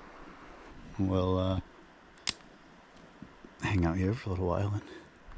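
A man speaks calmly and close by, in short phrases.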